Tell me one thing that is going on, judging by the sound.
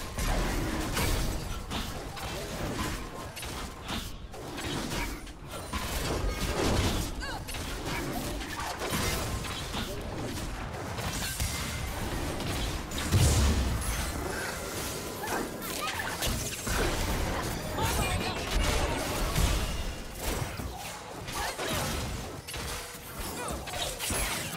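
Game spell effects whoosh and blast during a fight.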